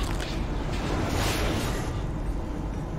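Metal sparks crackle and burst with a loud clash.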